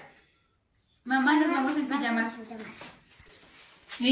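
A young girl talks.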